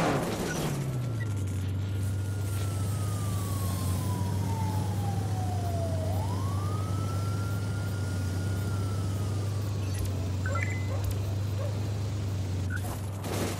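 A small drone hums steadily.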